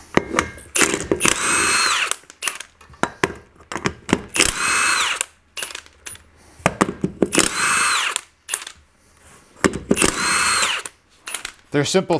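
An impact wrench rattles in short, loud bursts.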